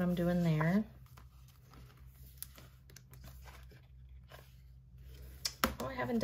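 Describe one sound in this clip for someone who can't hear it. Paper rustles softly as sheets are handled.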